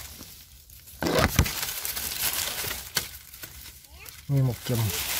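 Dry leaves rustle as a hand brushes through them.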